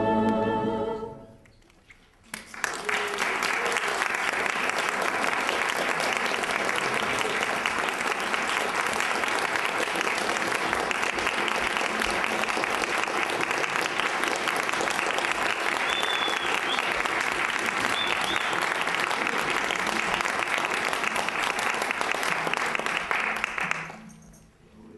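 A large ensemble of mandolins and guitars plays loudly in a reverberant hall.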